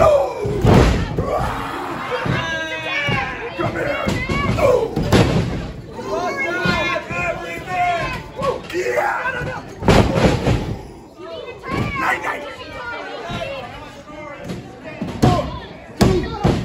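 A crowd of spectators cheers and shouts in a room with some echo.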